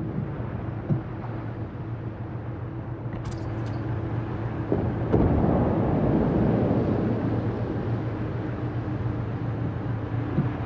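A ship's engine hums low and steadily.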